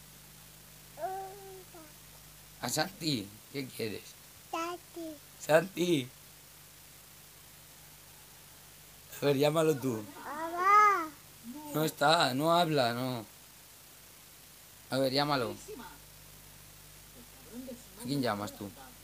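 A toddler babbles and chatters close by.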